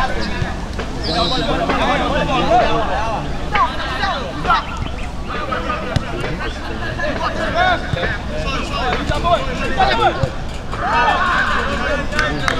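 Several young men shout and call out to each other outdoors at a distance.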